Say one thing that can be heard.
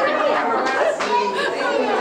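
A woman laughs heartily.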